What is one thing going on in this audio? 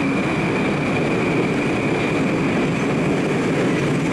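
A subway train rumbles past loudly, its wheels squealing.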